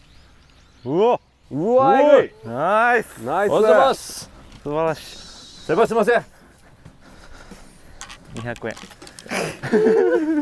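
A second man laughs and answers nearby.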